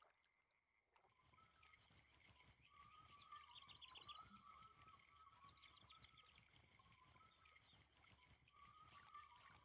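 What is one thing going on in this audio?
A fishing reel whirs as line pays out.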